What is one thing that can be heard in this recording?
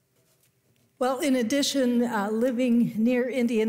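An elderly woman speaks clearly into a microphone in an echoing hall.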